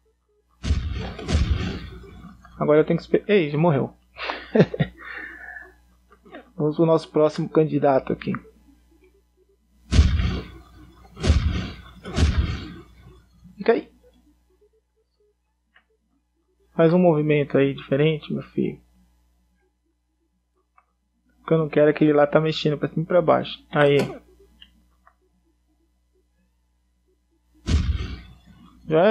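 Video game explosions boom in short bursts.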